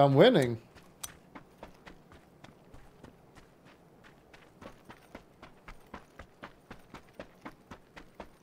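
Footsteps crunch quickly on dry dirt and gravel.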